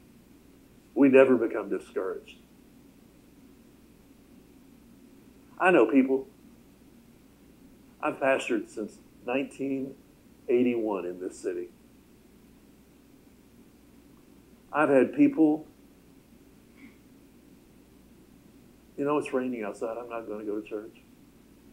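A middle-aged man speaks calmly through a microphone, in short phrases with pauses.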